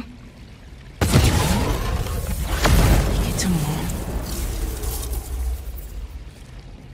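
Electricity crackles and roars in a loud, sudden burst that slowly fades.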